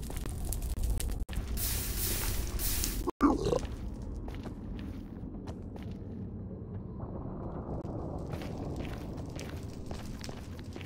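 Footsteps crunch on soft ground.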